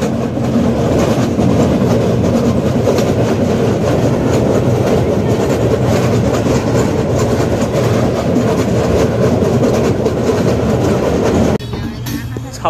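A train rumbles and rattles loudly over a steel bridge.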